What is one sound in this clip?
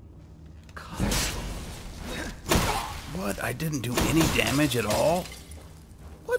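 A man speaks angrily nearby.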